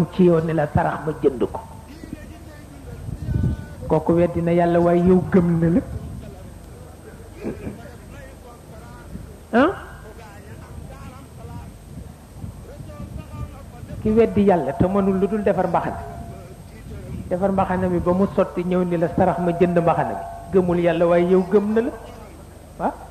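A man chants in long, drawn-out phrases, with pauses between them.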